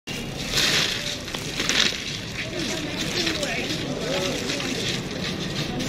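A plastic bag rustles and flaps close by.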